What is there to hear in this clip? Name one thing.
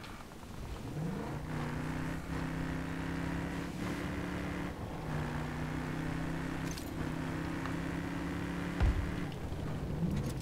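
A tank engine rumbles and whines as it drives.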